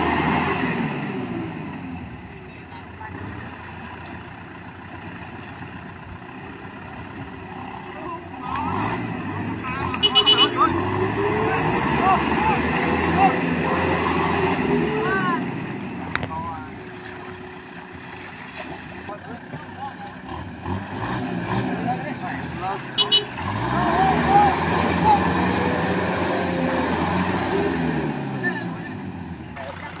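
A tractor engine runs and revs hard, rising and falling in pitch.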